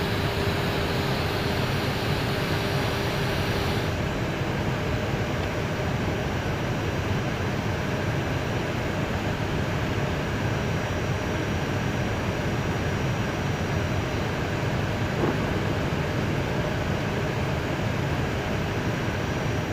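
Engines and rushing air roar steadily inside an airliner's cockpit in flight.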